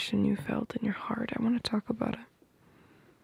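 A young woman speaks softly and closely into a microphone.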